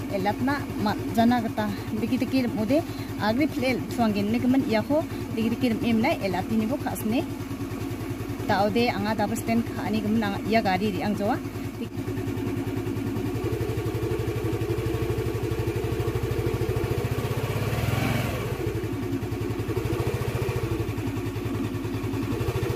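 A scooter engine idles with a steady low hum.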